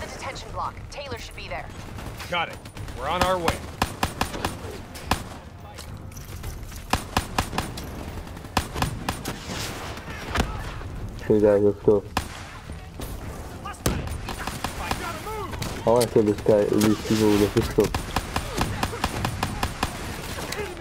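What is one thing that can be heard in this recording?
Rapid gunshots fire again and again.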